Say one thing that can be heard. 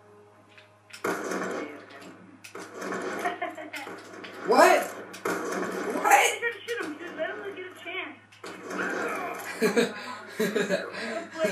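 Video game gunfire bangs from a television speaker.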